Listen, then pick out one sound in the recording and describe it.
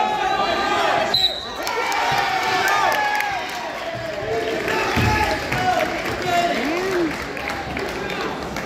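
A crowd of spectators shouts and cheers in a large echoing hall.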